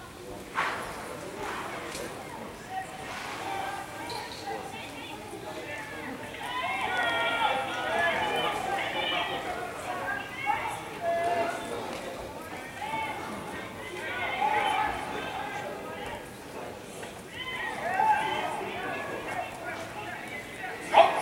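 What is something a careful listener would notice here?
A crowd shouts and cheers in a large echoing hall, heard through a television speaker.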